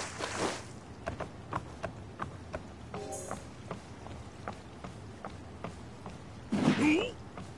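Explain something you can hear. Footsteps run quickly across wooden planks.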